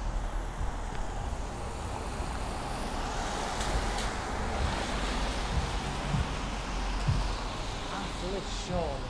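Footsteps fall softly on paving stones.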